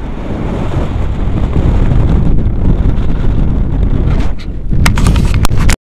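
Strong wind rushes and buffets loudly outdoors.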